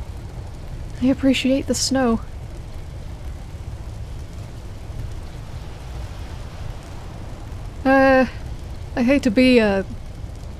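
A woman speaks close by in short, calm bursts.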